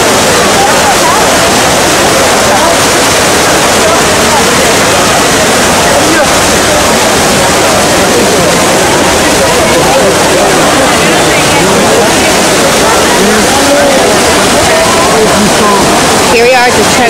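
Water splashes and rushes steadily from a large fountain.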